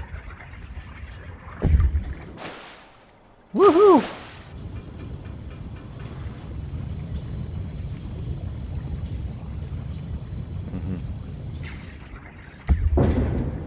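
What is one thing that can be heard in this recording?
A small submersible's motor hums low and steady underwater.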